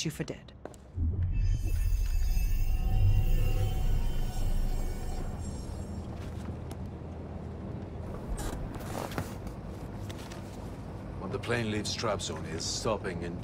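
A vehicle engine rumbles low and steady from inside the cab.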